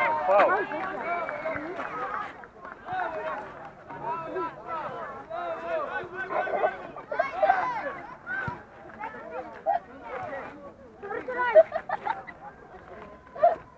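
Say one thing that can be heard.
Children shout and call out nearby and across an open field.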